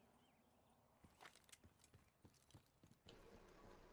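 A rifle bolt clicks and clacks during a reload.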